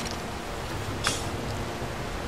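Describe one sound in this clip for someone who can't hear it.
An arrow thuds into a wooden target.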